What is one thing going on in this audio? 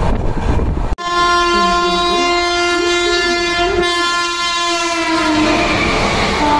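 A train horn blares long and loud, then fades.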